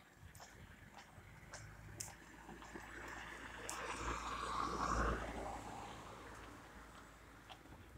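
A car approaches and passes by on the road.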